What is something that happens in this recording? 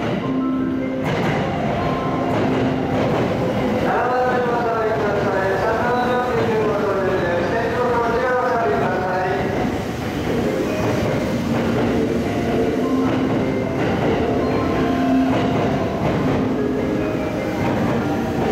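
A train rolls past close by with a loud rumble and rush of air.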